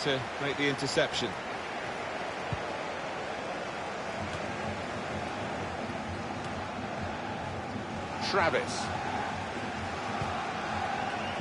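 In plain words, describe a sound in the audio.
A stadium crowd roars steadily throughout.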